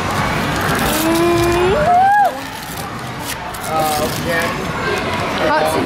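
Wrapping paper rips and crinkles as a gift is torn open.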